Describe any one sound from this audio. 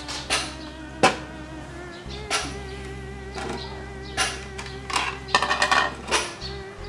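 Dishes clink against each other in a basin.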